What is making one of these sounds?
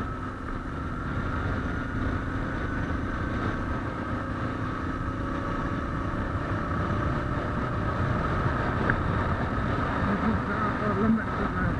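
Wind buffets the rider.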